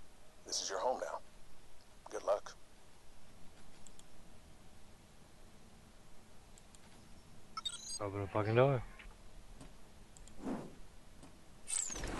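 Menu sounds whoosh and chime as options change.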